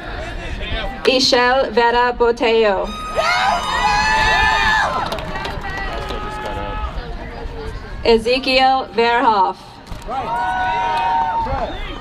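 A crowd cheers and shouts loudly in bursts.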